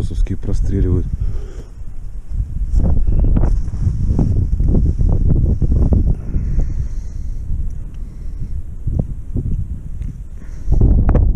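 Thick gloves rustle and scrape as hands handle a fishing line.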